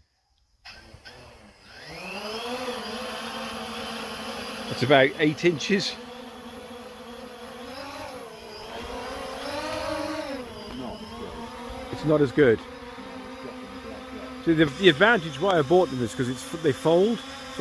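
A drone's propellers whir steadily as it lifts off and hovers.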